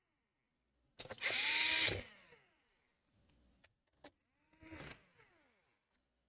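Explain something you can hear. A cordless drill whirs in short bursts, spinning out screws.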